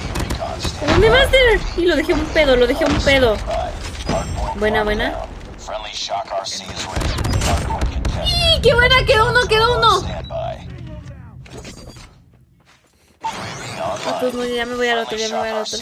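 A young woman speaks and exclaims with animation close to a microphone.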